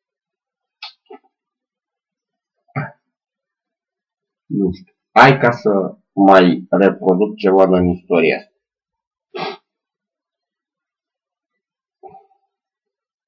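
A middle-aged man speaks close by in short bursts, with pauses.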